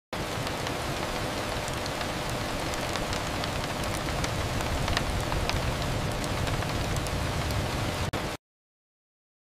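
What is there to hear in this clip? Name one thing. Rain patters steadily against a window.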